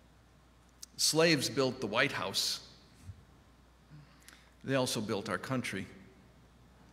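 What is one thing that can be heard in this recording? A middle-aged man speaks calmly into a microphone, heard in a quiet echoing room.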